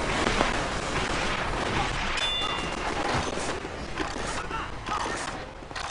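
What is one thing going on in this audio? Game weapons fire and explosions crackle in a video game.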